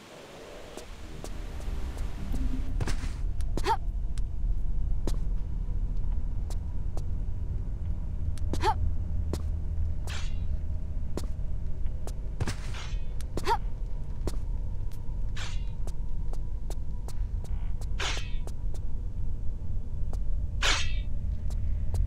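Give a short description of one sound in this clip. Footsteps patter quickly on a stone floor.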